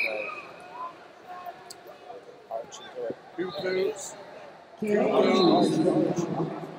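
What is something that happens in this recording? A crowd in a large echoing hall cheers and shouts loudly.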